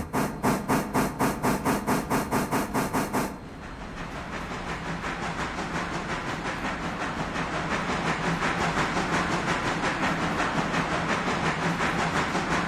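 Train wheels rumble and clatter along the rails.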